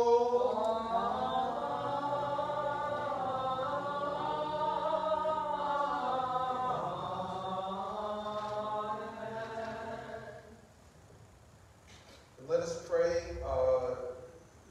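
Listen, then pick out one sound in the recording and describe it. A man chants a prayer in a steady, sung voice in an echoing hall.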